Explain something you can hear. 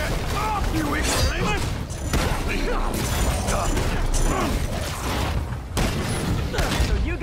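Heavy punches and crashes thud during a fight.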